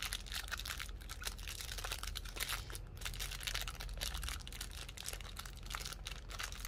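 Plastic wrapping crinkles and rustles between fingers, close up.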